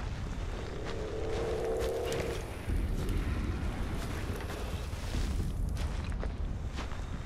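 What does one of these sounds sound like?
Fire crackles and roars close by.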